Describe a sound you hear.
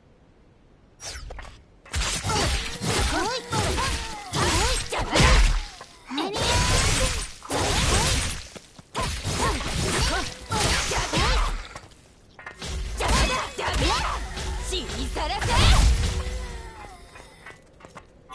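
Swords slash and clang in a fast fight.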